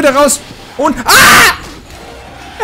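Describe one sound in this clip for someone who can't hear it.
A young man screams loudly into a close microphone.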